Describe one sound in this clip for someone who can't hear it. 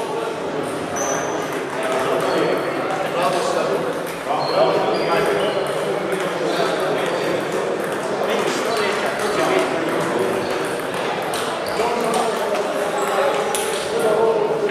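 Several people talk in the background.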